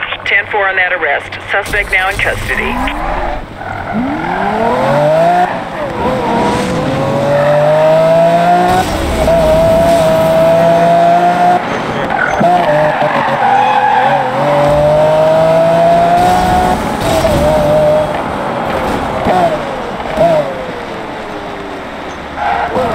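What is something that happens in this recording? A sports car engine roars, revving up and down as gears shift.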